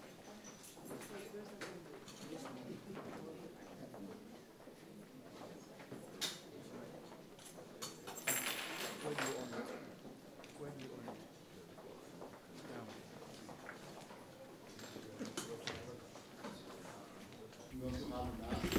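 Several men and women murmur and talk quietly nearby.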